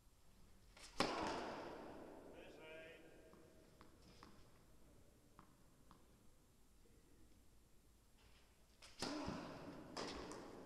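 A tennis racket strikes a ball with a loud pop that echoes through a large hall.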